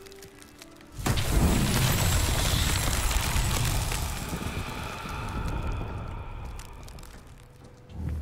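A magical shimmer swells up and slowly fades.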